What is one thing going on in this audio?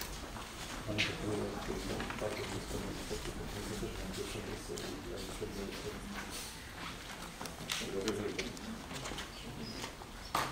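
Men talk quietly nearby.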